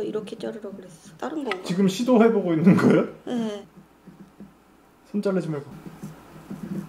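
A young woman talks casually and laughs close by.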